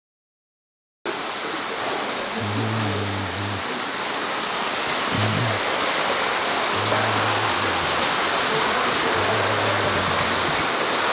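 Water bubbles and splashes steadily in tanks.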